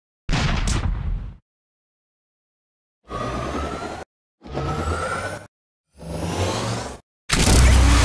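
A cartoon machine gun fires rapid bursts of shots.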